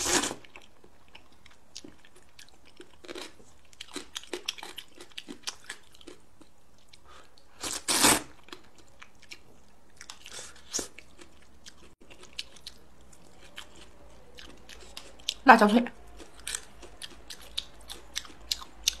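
A young woman chews food with soft smacking sounds.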